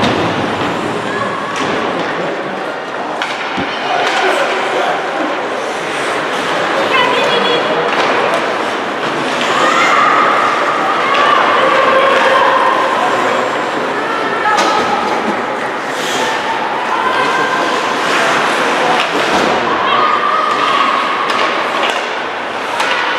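Hockey sticks click and clack against the puck.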